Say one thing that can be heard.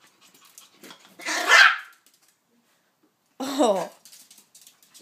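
A small dog gives a short, sharp bark.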